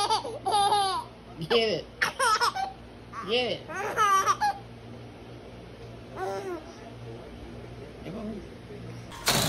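A baby squeals and giggles loudly, close by.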